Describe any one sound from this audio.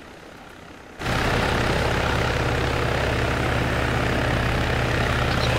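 A helicopter hovers close by with a loud, steady rotor roar.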